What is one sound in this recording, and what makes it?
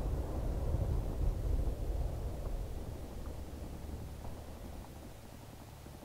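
A deep rumble of distant explosions rolls and slowly fades.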